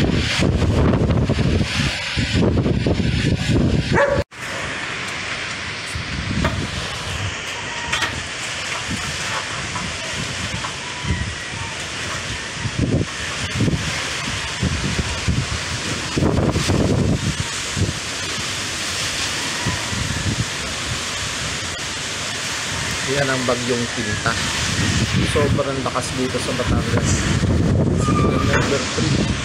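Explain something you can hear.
Heavy rain hisses steadily.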